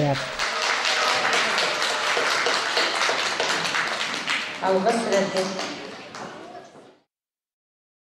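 A crowd applauds loudly in a large hall, then the clapping fades away.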